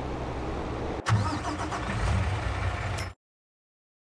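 A heavy machine engine roars loudly.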